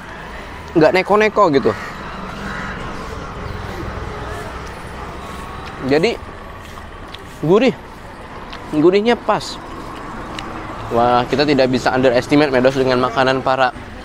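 A young man talks in short bursts close by.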